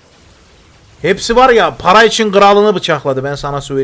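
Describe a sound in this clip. A young man speaks loudly with animation into a close microphone.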